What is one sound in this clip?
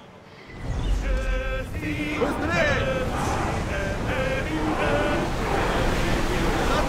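Many men sing loudly together on a ship.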